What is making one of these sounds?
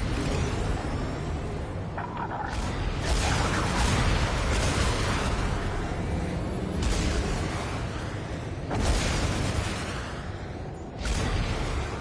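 A flying craft's engine roars and whooshes steadily.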